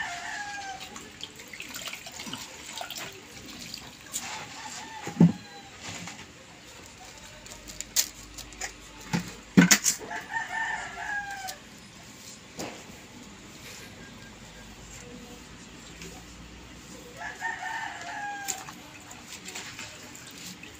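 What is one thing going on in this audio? Hands splash and swish water in a bucket.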